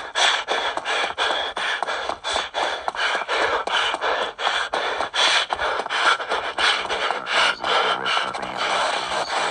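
Quick, even footsteps thud along a hard floor.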